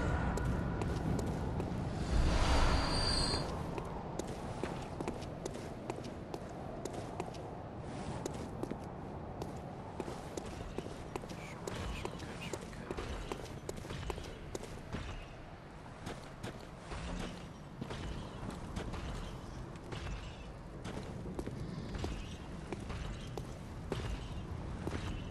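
Footsteps run over stone paving.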